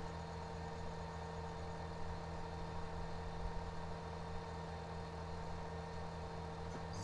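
A tractor engine hums steadily at a constant pitch.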